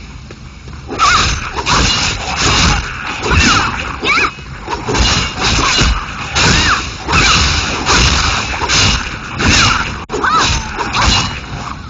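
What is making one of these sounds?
Blades slash and strike in rapid, repeated bursts.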